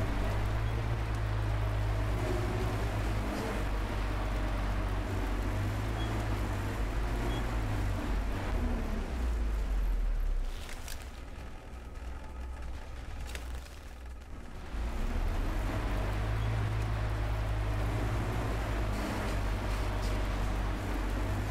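A vehicle engine rumbles steadily and drops to a quiet idle for a few seconds.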